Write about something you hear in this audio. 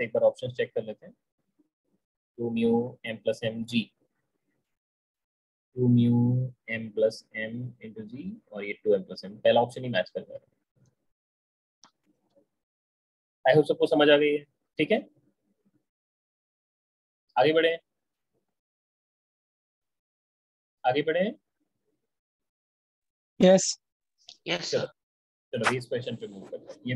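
A man speaks calmly and explains through a close microphone, with pauses.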